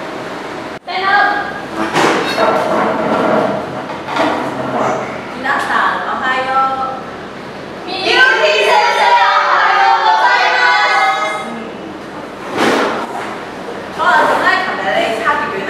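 A woman speaks loudly and clearly, close by.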